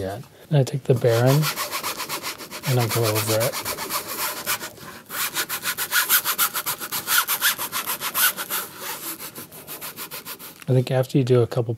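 A sanding block rubs quickly back and forth over wood.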